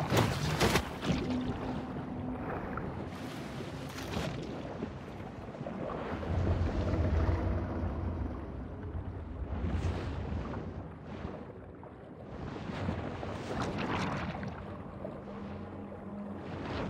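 A low underwater rumble churns steadily, with swishing surges of water.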